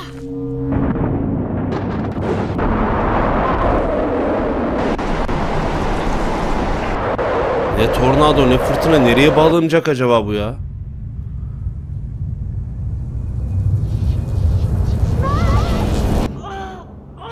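A storm wind roars loudly and then suddenly stops.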